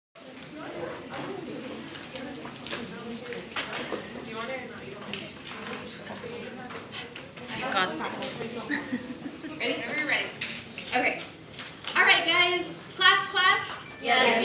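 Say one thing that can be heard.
A young woman speaks with animation, heard from a short distance in a room.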